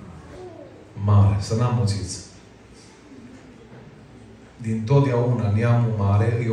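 A man speaks with animation through a microphone and loudspeakers in an echoing room.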